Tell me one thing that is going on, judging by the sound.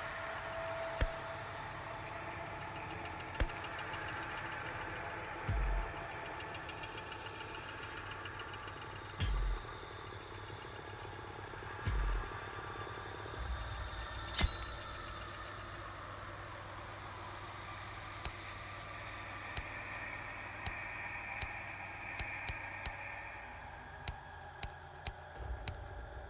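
Game menu clicks tick sharply now and then.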